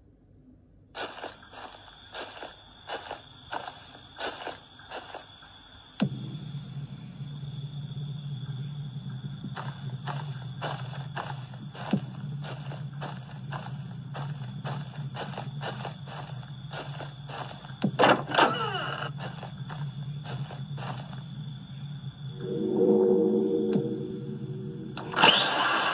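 Eerie ambient game music drones steadily from a tablet's speaker.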